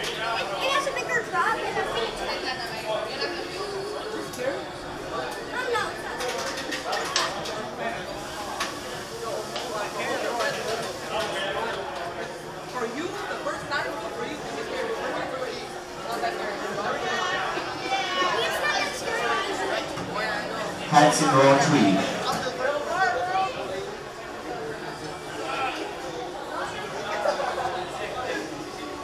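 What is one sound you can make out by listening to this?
A crowd of riders chatters.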